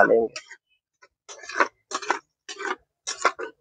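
A metal spatula scrapes and stirs in a clay pot.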